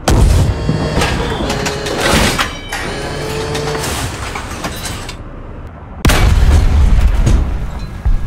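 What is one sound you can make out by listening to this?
A tank engine rumbles heavily from close by.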